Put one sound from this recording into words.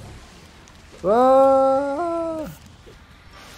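A young man draws out a long, high sung note into a microphone.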